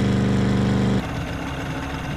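A small boat motor putters.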